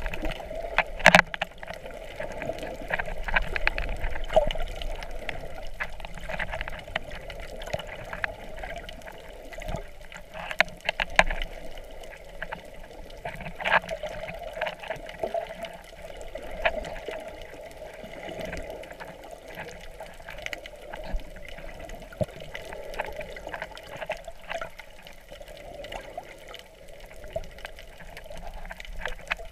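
Underwater sounds rumble and crackle steadily.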